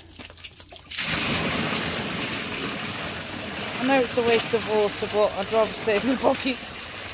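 Water gushes out of a tipped barrel and splashes onto the ground.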